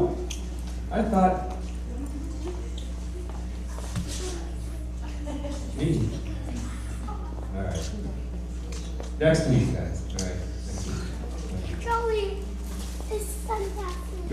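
An elderly man talks calmly to children in a large echoing hall.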